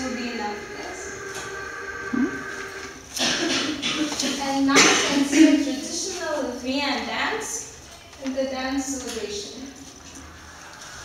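A young woman speaks calmly to a room, heard from a short distance.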